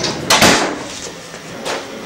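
Paper rustles as a woman wraps a parcel.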